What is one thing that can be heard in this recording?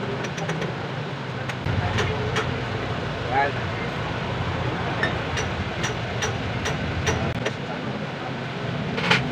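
Metal parts clink and tap together as they are handled.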